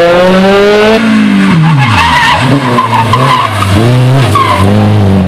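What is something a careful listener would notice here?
A second rally car engine revs and snarls through a bend.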